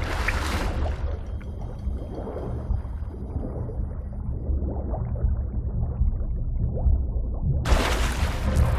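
A deep, muffled underwater rumble sounds steadily.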